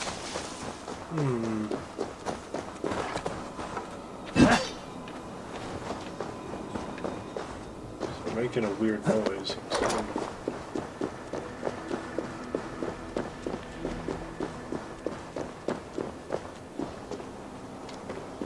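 Footsteps crunch steadily on gravel and stone.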